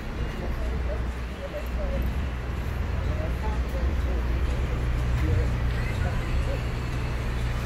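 A woman talks calmly nearby, muffled by a face mask.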